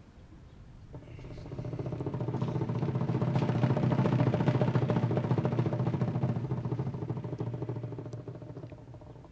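A brass band plays a march outdoors, with trumpets blaring.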